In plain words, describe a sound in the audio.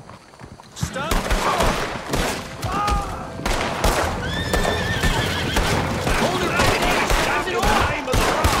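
A revolver fires several loud shots.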